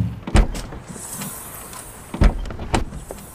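A car door swings open with a soft thud.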